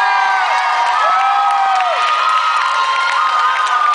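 People clap their hands.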